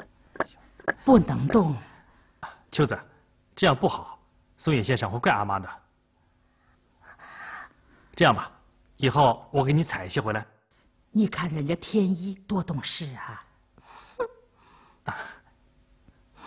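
An older woman speaks with animation, close by.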